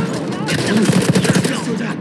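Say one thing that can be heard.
An explosion booms in the distance.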